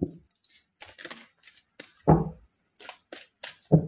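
Playing cards riffle and slap as a deck is shuffled.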